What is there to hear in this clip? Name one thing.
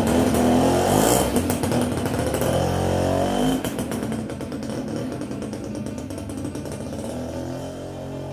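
A motorcycle engine revs loudly and pulls away, fading into the distance.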